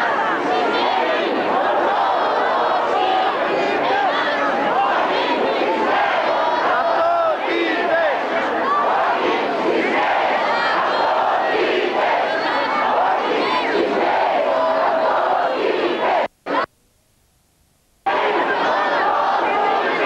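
A large crowd of men and women chatters and calls out loudly outdoors.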